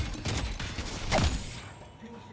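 An explosion bursts with a loud crack.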